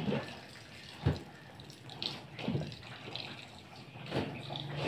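Wet cloth splashes and sloshes in a bucket of water.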